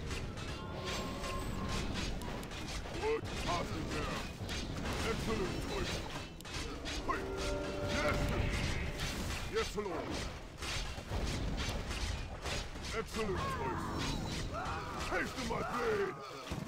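Weapons clash and strike repeatedly.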